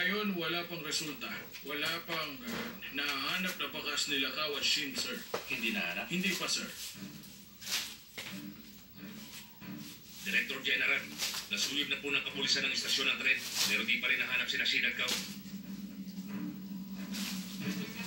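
A man speaks on a television, heard through its small loudspeaker.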